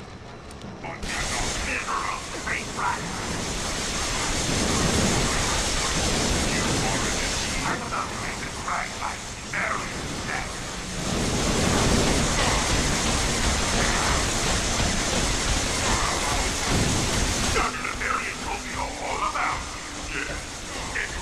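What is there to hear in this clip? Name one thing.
Electric bolts crackle and zap in a video game.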